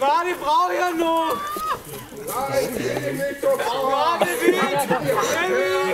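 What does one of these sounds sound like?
A crowd of men and women sings loudly together outdoors.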